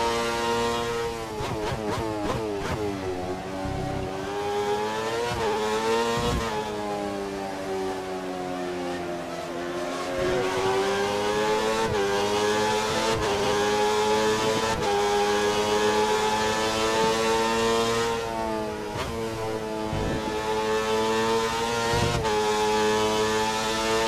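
A racing car engine whines loudly, revving up and dropping sharply with each gear change.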